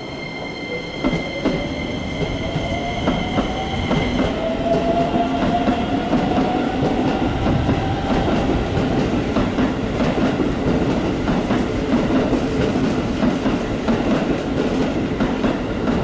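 Metal wheels clank and squeal on the rails.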